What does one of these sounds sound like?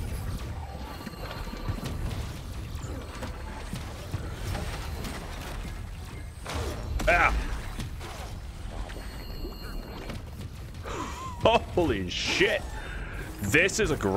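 Sharp sword slashes and hits crack in quick bursts.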